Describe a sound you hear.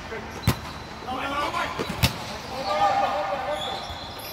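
Men call out and shout to each other across a court.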